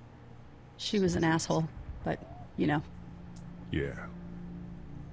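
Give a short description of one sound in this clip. A young woman speaks anxiously.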